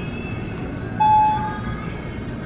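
An elevator chime dings once.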